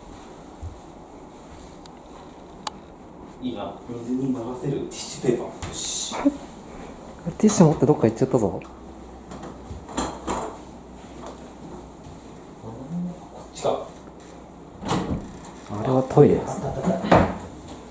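Footsteps pad across a wooden floor.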